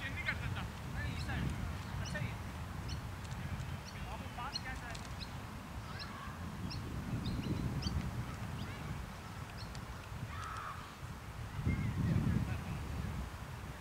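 Wind rumbles across an open field outdoors.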